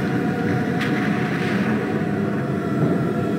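Water splashes heavily in a bathtub.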